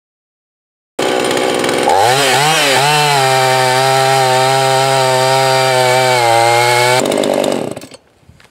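A chainsaw starts up, revs a few times and then runs at a steady high roar before cutting off.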